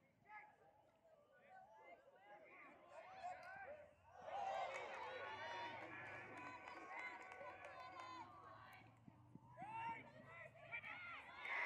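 Young men shout across a playing field.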